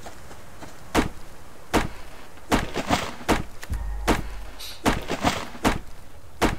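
An axe chops into a tree trunk with sharp, repeated knocks.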